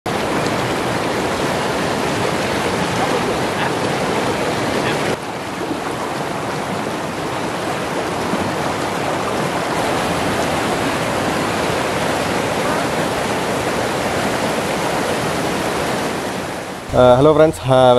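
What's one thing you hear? Rushing water roars and splashes loudly close by.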